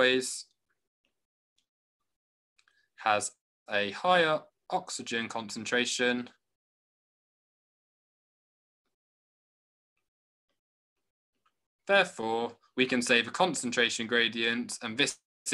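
A young man speaks calmly through a microphone, explaining in pauses.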